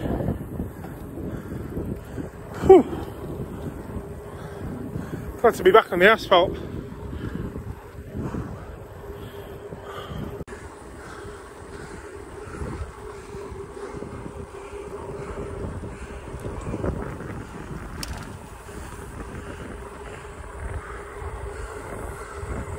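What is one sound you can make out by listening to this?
Wind rushes across the microphone.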